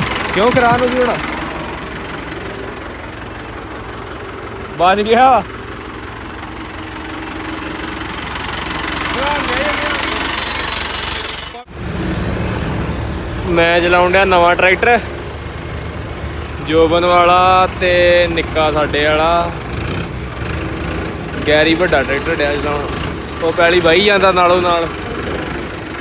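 A tractor engine rumbles steadily nearby.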